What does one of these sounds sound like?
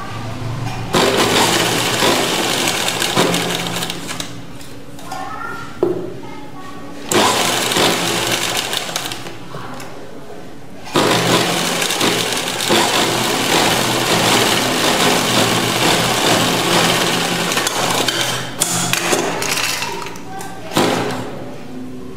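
A sewing machine runs in loud, fast bursts of stitching.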